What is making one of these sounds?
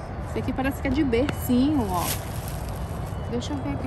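A plastic bag rustles and crinkles.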